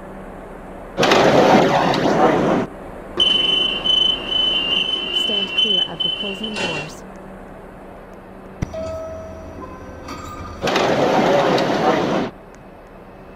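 Train doors slide with a loud rushing hiss.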